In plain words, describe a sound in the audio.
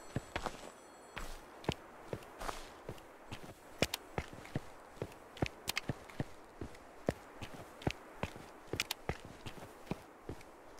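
Footsteps crunch steadily on a forest path.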